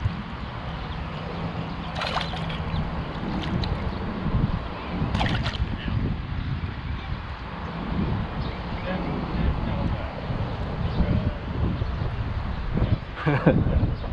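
Shallow river water rushes and gurgles close by.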